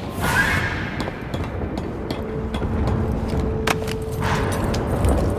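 Hands and boots knock and scrape while climbing along a metal pipe.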